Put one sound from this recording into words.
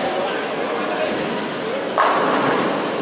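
A bowling ball rumbles down a wooden lane.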